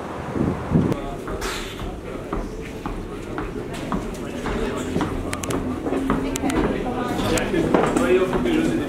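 Men talk quietly nearby in a room.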